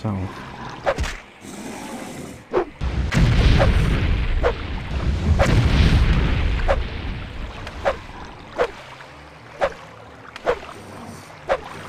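A blade strikes again and again with sharp thuds.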